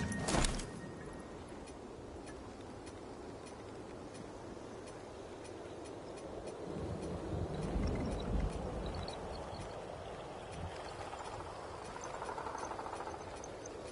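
Soft menu clicks tick now and then.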